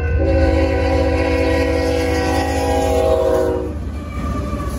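A train horn blares loudly nearby.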